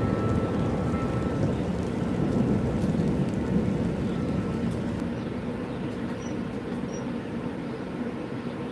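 Small caged birds chirp and cheep softly.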